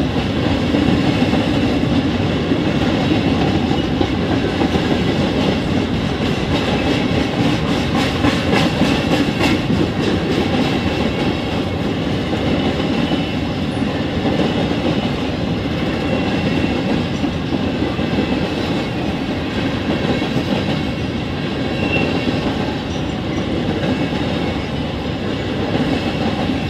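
A crossing bell rings steadily.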